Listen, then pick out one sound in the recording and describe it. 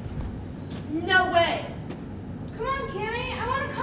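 A young woman speaks with animation on a stage, heard from across a hall.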